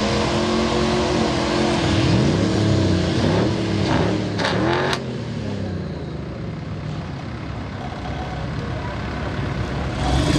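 Mud splashes and sloshes around tyres.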